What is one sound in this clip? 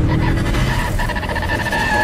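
A car's tyres screech as they spin on the spot.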